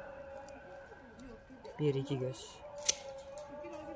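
Pruning shears snip through a woody vine with sharp clicks.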